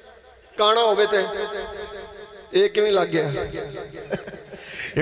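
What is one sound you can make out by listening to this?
A man chants loudly and melodiously through a microphone, echoing as over a loudspeaker.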